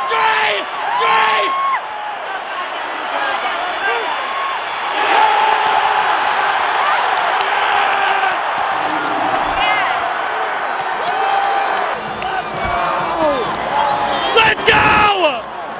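Fans nearby whoop and yell with excitement.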